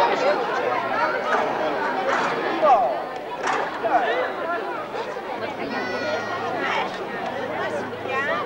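A crowd of men and women chatters and calls out outdoors.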